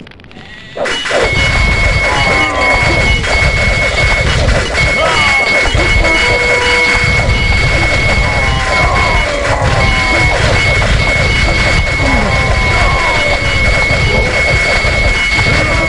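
Swords and weapons clash in a noisy battle.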